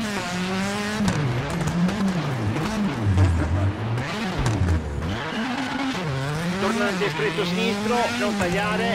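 A rally car engine revs up and down.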